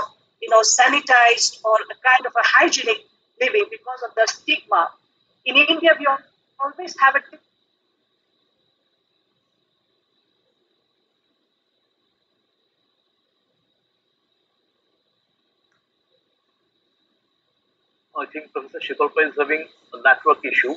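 A middle-aged woman speaks earnestly through an online call.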